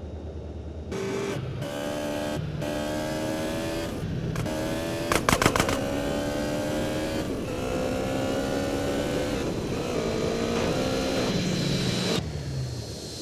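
A motorbike engine revs steadily as it rides along.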